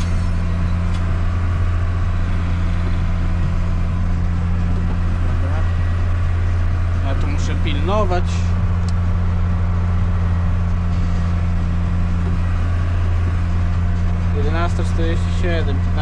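A tractor engine drones steadily with a low, even hum from inside the cab.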